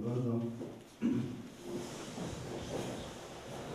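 Chairs creak and scrape as a group of people sit down.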